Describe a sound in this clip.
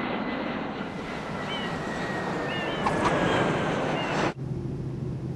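A small plane's engine drones overhead.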